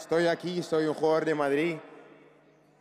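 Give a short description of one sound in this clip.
A young man speaks with animation into a microphone, his voice carried over loudspeakers.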